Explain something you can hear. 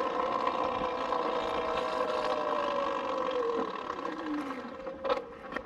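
An electric motor whines and winds down as a motorbike slows to a stop.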